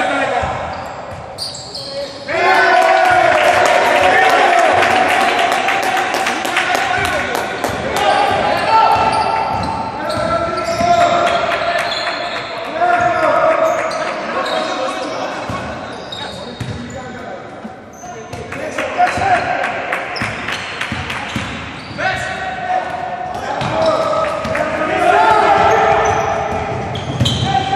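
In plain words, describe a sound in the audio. A crowd of spectators chants and cheers loudly in a large echoing hall.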